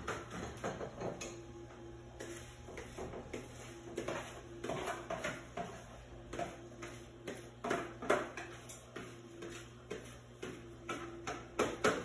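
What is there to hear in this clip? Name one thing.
Pots and utensils clink and clatter on a stove.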